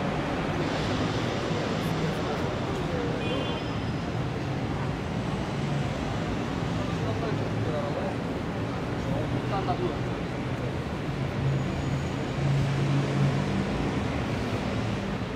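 Distant traffic hums steadily along a quiet city street.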